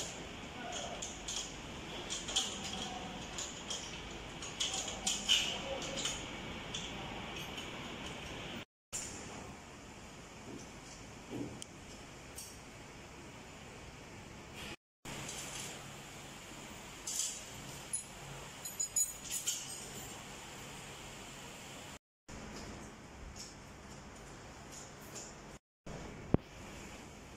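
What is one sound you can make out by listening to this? Metal parts clank and rattle as they are fitted together.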